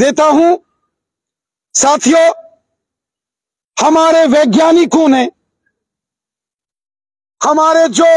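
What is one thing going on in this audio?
A middle-aged man speaks forcefully into a microphone, in short bursts with pauses.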